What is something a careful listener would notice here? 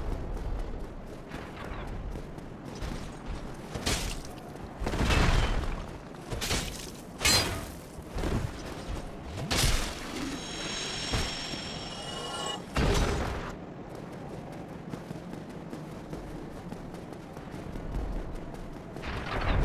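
Armoured footsteps tread on stone.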